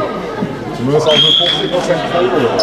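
A referee's whistle blows once.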